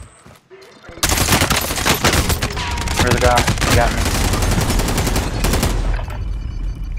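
Rapid gunshots fire in loud bursts close by.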